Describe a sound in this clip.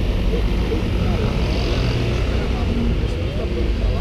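A car drives by on the street.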